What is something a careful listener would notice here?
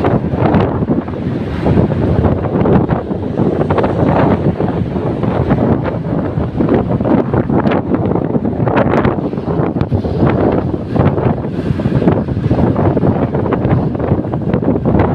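Wind buffets the microphone loudly and steadily outdoors.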